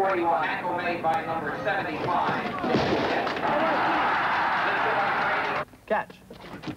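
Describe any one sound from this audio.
Football players crash into each other on a field.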